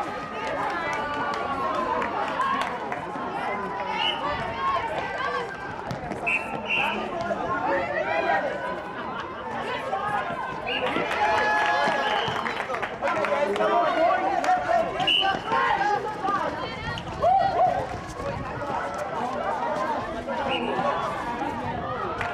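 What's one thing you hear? Young women shout and call to each other outdoors.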